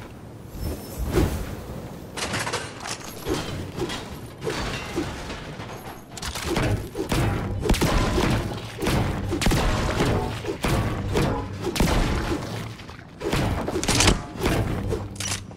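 A pickaxe strikes metal and wood again and again.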